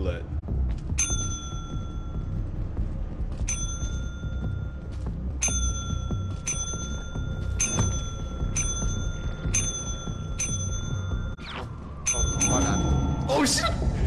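A bell rings over and over with a clear, ringing tone.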